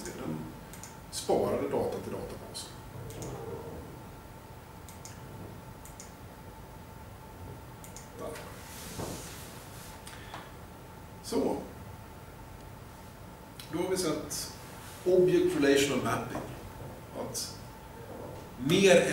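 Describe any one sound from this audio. A man speaks calmly, in bursts with pauses.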